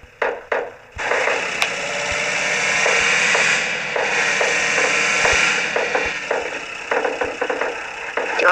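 A car engine runs steadily and roars.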